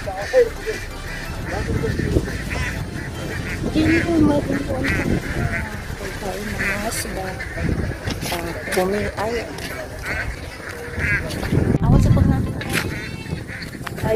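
A man talks outdoors.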